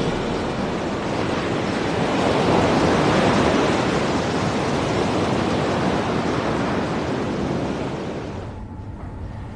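Rough sea waves churn and wash loudly.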